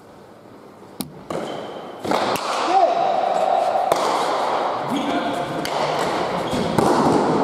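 A hard ball smacks sharply against walls in a large echoing hall.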